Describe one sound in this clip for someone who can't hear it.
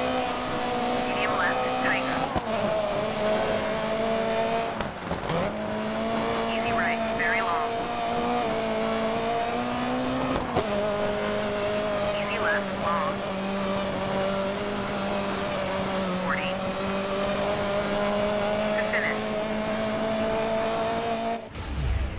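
Tyres crunch and skid on gravel.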